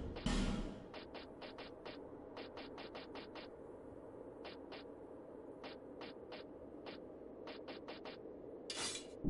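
Short menu clicks tick in quick bursts.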